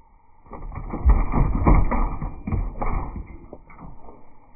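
A wire cage rattles as an animal moves inside it.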